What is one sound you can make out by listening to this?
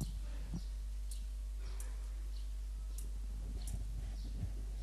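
A metal censer chain clinks as it swings.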